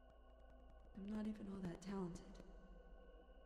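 A young woman speaks quietly.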